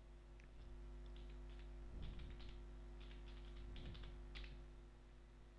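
Keys clatter as someone types on a keyboard.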